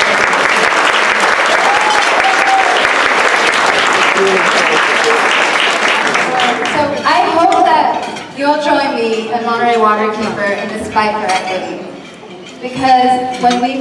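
A young woman speaks into a microphone over a loudspeaker.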